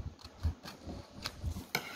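Scissors snip through paper.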